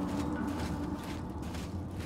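A spell casts with a bright magical whoosh.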